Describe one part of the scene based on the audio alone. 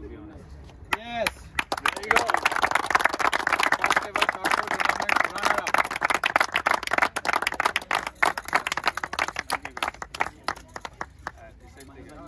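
A group of young men clap and cheer outdoors.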